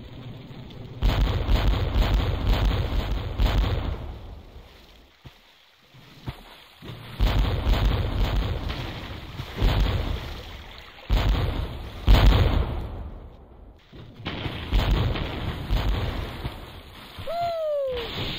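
Cannons fire in repeated heavy booms.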